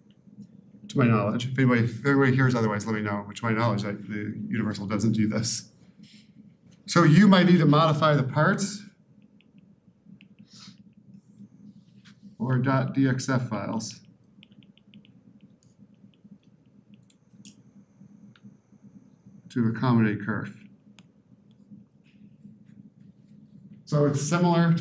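A man lectures calmly through a microphone, pausing often.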